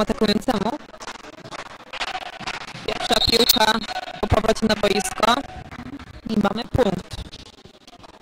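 Young men shout and cheer in a large echoing hall.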